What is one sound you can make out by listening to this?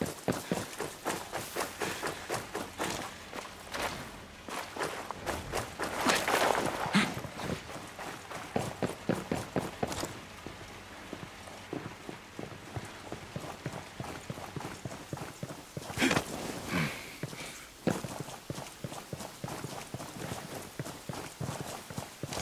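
Footsteps thud quickly on the ground as a man runs.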